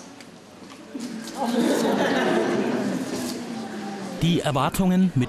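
A group of children chants together in a large echoing hall.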